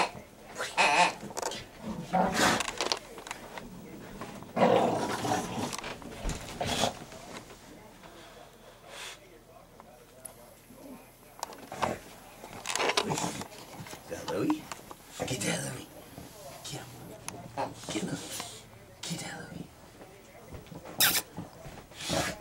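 A dog growls and snorts while playing.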